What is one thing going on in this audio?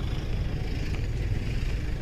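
Motorcycle engines idle nearby.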